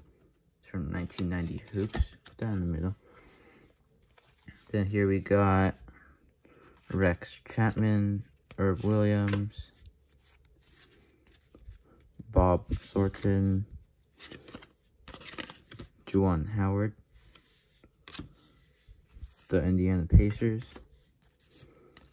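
Trading cards slide and rustle against each other as they are shuffled by hand.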